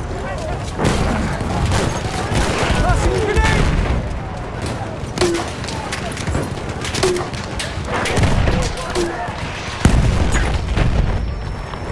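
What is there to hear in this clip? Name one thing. Explosions and gunfire rumble in the distance.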